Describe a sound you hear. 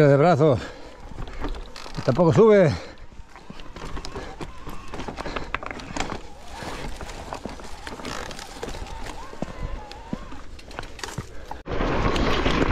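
Bike tyres bump and scrape slowly over rough rock.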